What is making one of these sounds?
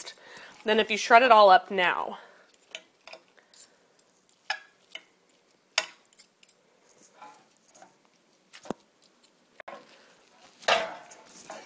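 Forks scrape and pull apart soft meat in a glass dish.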